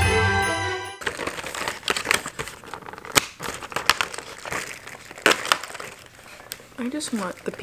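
Cardboard packaging rustles and clicks as fingernails tap and open it.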